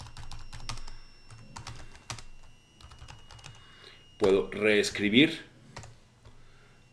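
A man types quickly on a keyboard with clicking keys.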